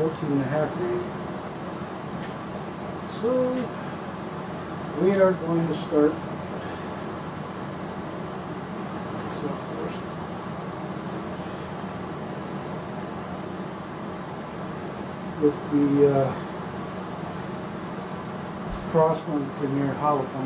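A middle-aged man talks calmly and close by, in short bursts.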